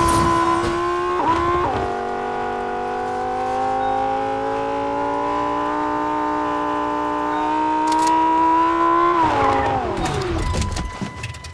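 A car engine hums steadily, its pitch dropping once and then slowly rising.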